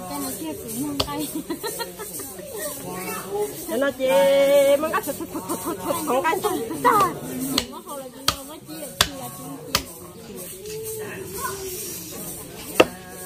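A knife chops through meat on a board with sharp knocks.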